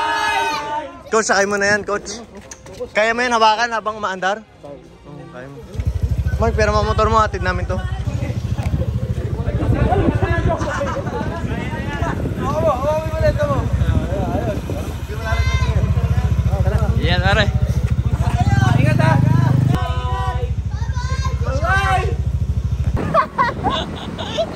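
Young men cheer and shout from above.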